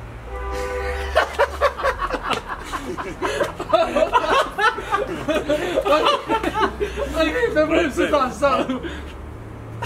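Young men laugh and shout with excitement close by.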